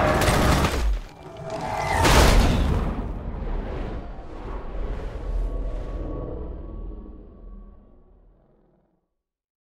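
A deep rumbling roar swells and slowly fades away.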